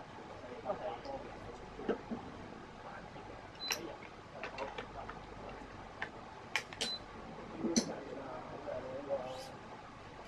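Racket strings snap and click as they are threaded and pulled tight.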